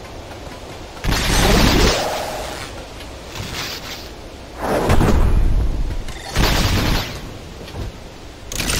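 Video game laser blasts zap and crackle.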